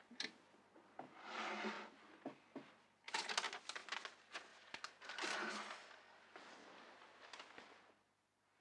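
A duvet rustles.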